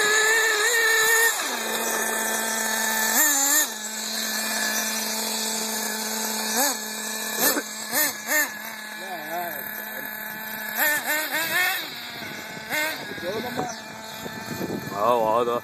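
A small model car engine whines loudly, revving up and down.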